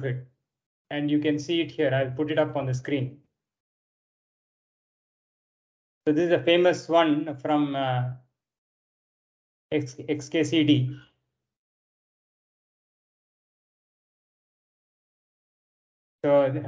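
A man speaks calmly in short bursts through an online call.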